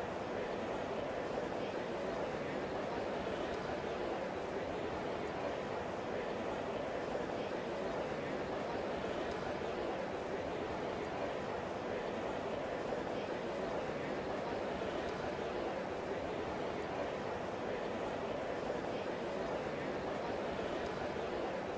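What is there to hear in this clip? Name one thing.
A large crowd murmurs steadily in the background.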